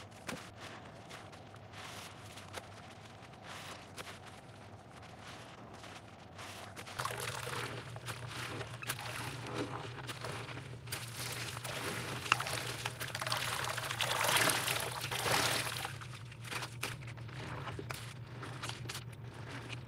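Soap suds crackle and pop softly.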